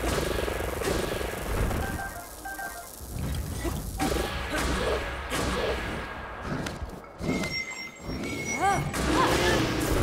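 A sword slashes and strikes.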